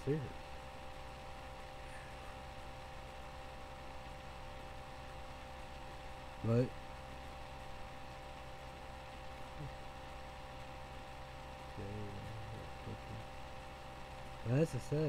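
A young man speaks briefly and calmly into a nearby microphone, with long pauses.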